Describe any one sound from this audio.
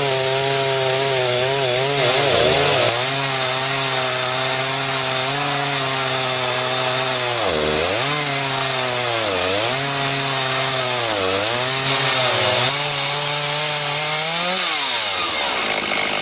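A chainsaw in a milling attachment cuts lengthwise through a cherry log, its engine under load and its pitch dipping now and then.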